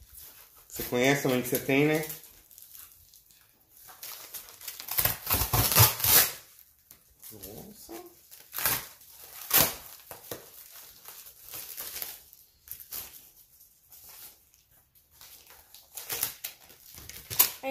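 Cardboard rustles and tears as a box is opened.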